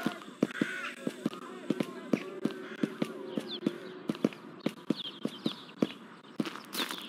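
Footsteps crunch steadily on hard ground.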